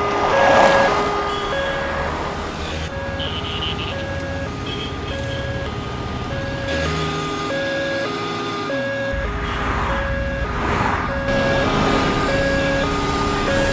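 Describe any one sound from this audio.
An ambulance engine hums as it drives along a street.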